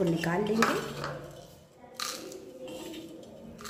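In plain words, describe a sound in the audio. Dry seeds rattle as they are tipped into a plastic bowl.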